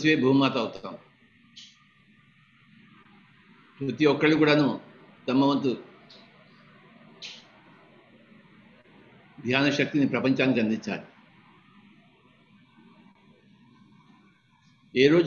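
An elderly man speaks calmly in short phrases with long pauses, heard over an online call.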